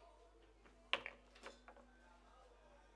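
Pool balls knock together and roll across the table.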